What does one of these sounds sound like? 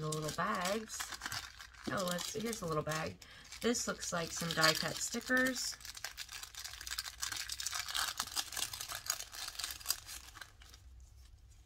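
Paper and plastic crinkle and rustle in someone's hands.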